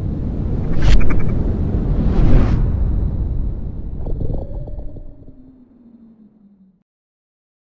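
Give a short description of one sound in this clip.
A massive avalanche rumbles and roars down a mountainside.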